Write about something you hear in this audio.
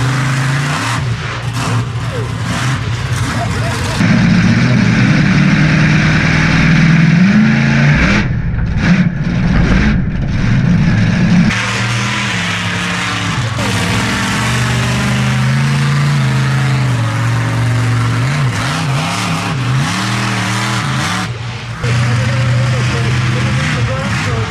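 A monster truck engine roars loudly and revs up and down.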